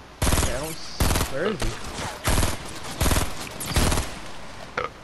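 A rifle fires a rapid series of loud shots.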